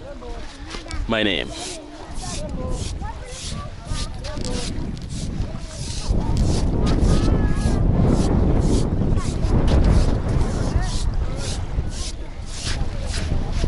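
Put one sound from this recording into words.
A stick scrapes lines into wet sand.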